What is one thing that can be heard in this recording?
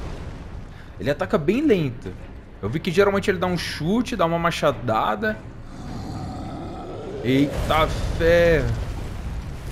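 A monstrous creature roars and bellows loudly.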